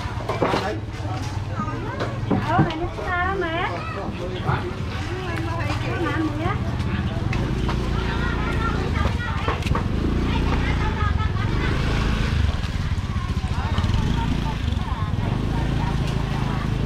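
People chatter around a busy outdoor market.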